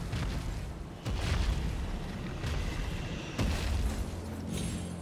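A horse's hooves thud steadily at a gallop.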